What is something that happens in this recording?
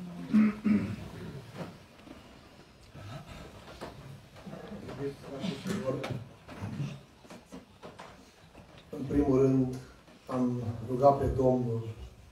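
A man speaks solemnly into a microphone in a large echoing hall.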